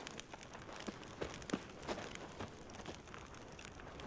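Boots thud and scrape on wooden beams during a climb.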